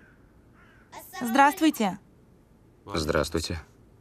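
A young boy speaks loudly and urgently nearby.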